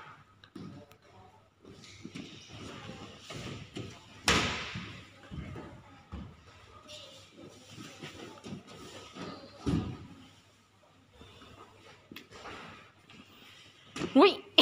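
A small child's hands and feet thump and scuff on a plastic slide.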